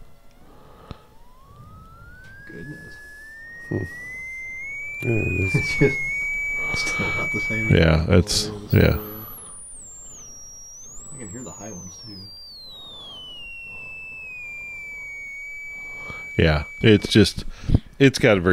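A steady whistling tone from a loudspeaker slowly rises in pitch, then sweeps back down.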